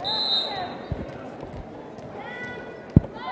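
A volleyball is bounced on the floor.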